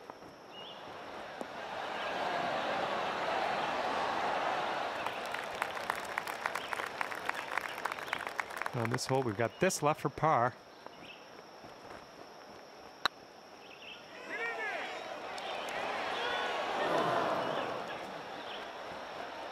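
A crowd cheers and applauds, swelling and then fading.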